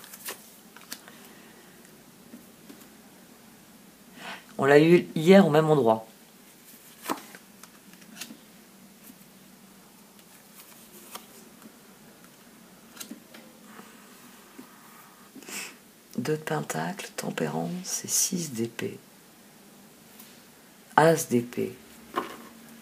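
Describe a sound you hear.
Playing cards slide and tap softly on a wooden table.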